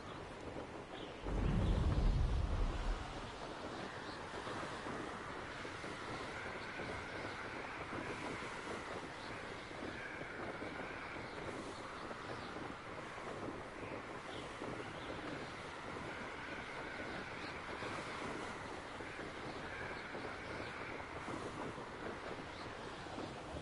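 Wind rushes steadily past a fast-flying rider.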